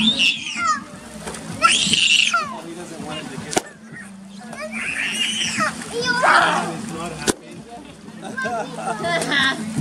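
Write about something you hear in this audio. Children shout and squeal playfully nearby, outdoors.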